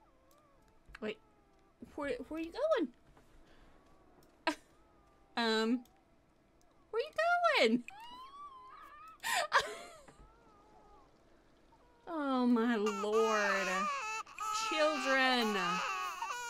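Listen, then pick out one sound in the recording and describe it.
A young woman talks animatedly into a microphone.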